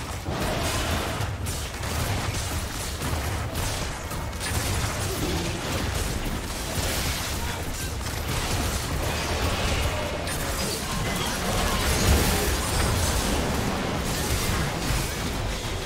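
Video game spell blasts and hits whoosh and crash.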